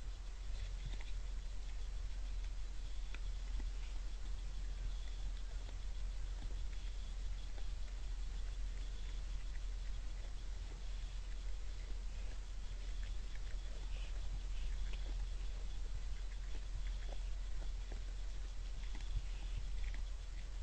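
Deer crunch corn as they feed on the ground.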